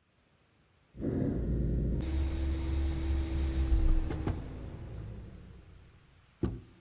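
A car engine rumbles and then winds down.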